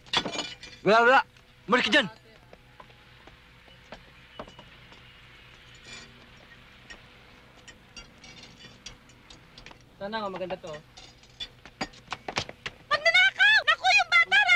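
A woman calls out loudly in a high voice nearby.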